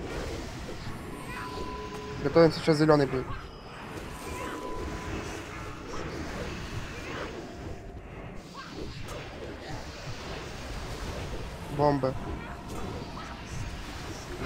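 Magical spell effects whoosh, crackle and chime.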